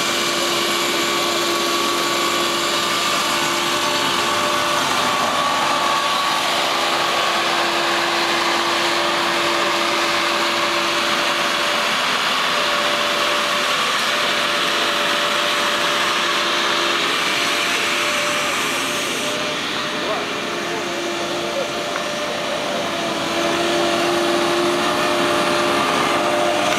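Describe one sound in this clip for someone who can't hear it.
A ride-on mower engine hums steadily nearby.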